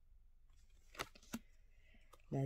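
A card taps softly onto a table.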